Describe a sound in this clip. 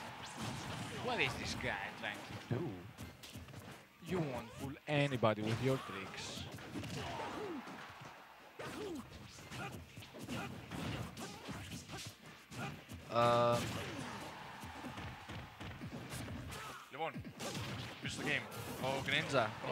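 Video game fighting sound effects hit and clash rapidly.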